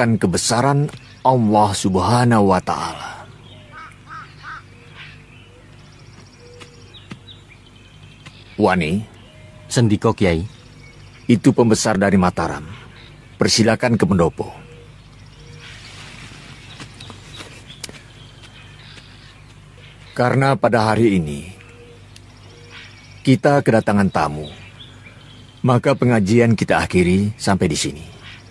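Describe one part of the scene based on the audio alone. An elderly man speaks slowly and firmly, close by, in short bursts with pauses between.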